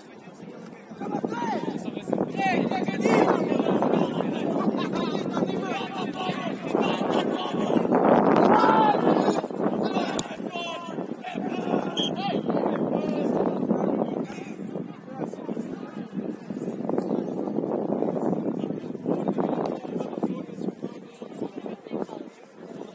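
Young men shout and call out to each other across an open outdoor pitch.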